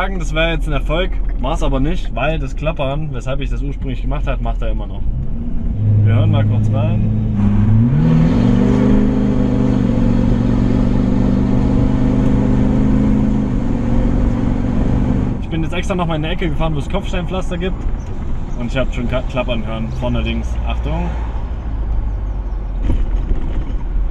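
A truck engine hums steadily while driving.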